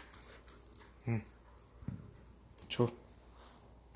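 A small dog gives short yelps.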